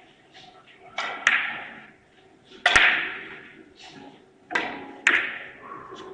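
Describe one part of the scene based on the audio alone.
Billiard balls click sharply against each other and the cushions, with a short echo after each hit.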